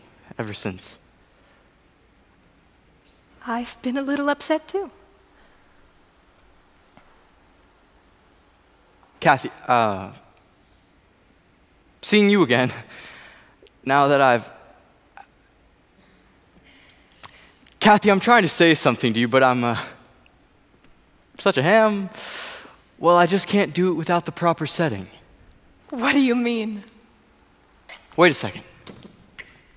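A young man speaks with feeling in a large hall.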